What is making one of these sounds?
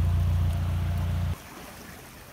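A boat engine chugs with a low, steady hum, then cuts off.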